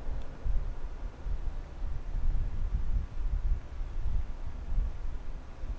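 Footsteps shuffle slowly on a hard floor.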